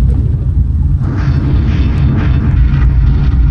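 A figure scuffs and shuffles while crawling along a metal duct.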